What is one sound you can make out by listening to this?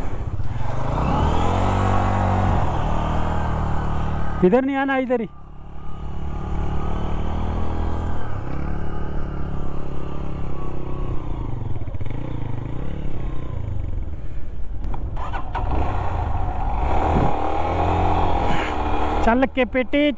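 Another motorcycle engine revs and strains nearby.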